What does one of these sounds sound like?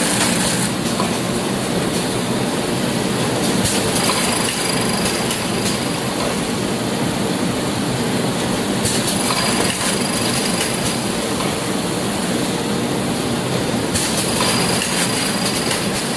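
A machine whirs and rattles steadily.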